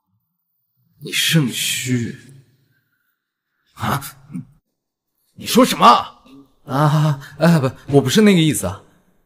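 A young man answers defensively, close by.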